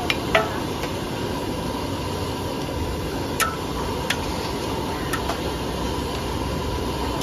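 Noodles sizzle loudly in a hot wok.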